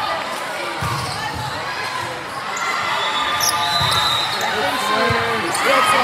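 A volleyball is struck with a hand with a sharp smack.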